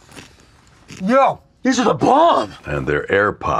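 A young man exclaims with excitement.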